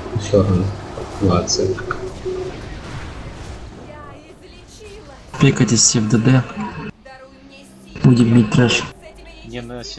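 Magic spells crackle and whoosh in a fantasy battle.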